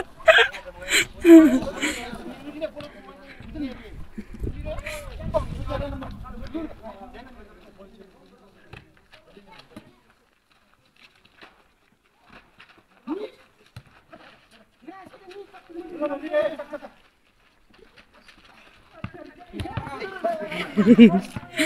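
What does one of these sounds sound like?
Young men shout and call out to each other outdoors at a distance.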